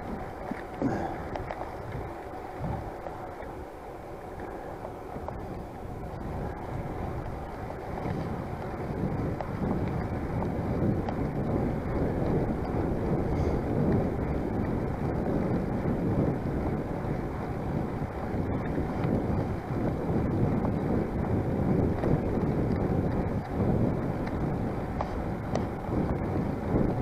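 Bicycle tyres roll along a paved path.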